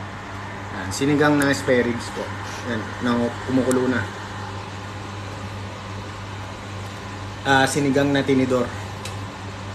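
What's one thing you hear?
A young man talks close by, in a casual tone.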